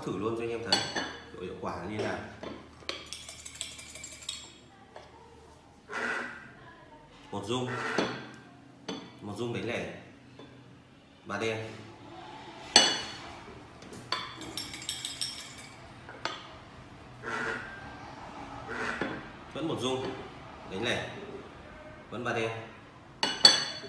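A porcelain cup clinks onto a saucer.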